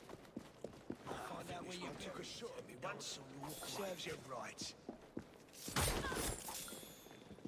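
Heavy blows land in a scuffle.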